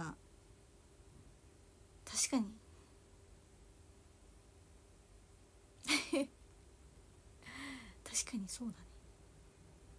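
A young woman speaks softly and briefly up close, with long pauses.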